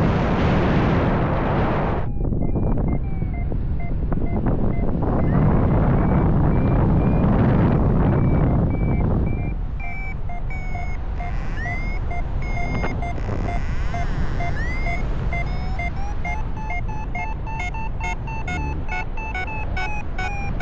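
Wind rushes loudly past the microphone in flight.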